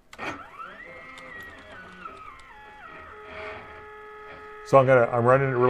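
Stepper motors whine in shifting, stepped tones.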